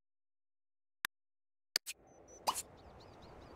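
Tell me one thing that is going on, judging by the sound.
Soft interface clicks tick a few times.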